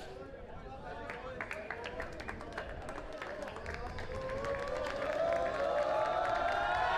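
A group of people claps rapidly.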